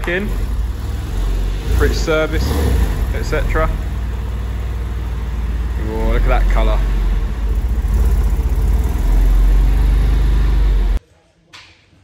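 A sports car engine idles with a deep rumble and revs up now and then.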